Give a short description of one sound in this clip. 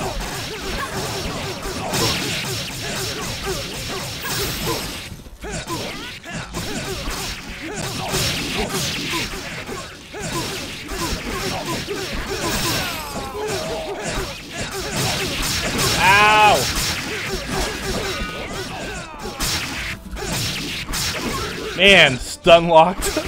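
Weapons clash and spells burst in a fast fight.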